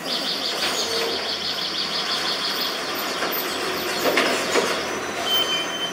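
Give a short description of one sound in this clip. A tow truck drives past close by.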